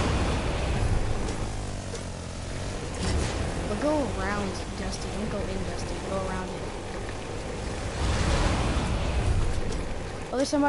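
A quad bike engine rumbles and roars steadily.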